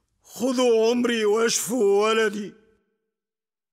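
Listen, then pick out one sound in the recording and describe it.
A man speaks fearfully, close by.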